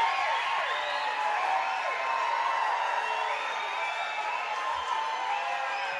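Electric guitars play loudly through amplifiers.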